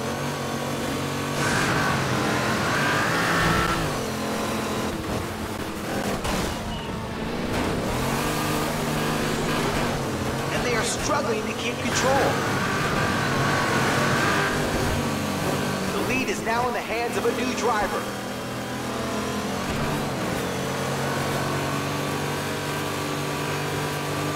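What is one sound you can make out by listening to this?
A racing car engine roars steadily and shifts pitch as it changes gear.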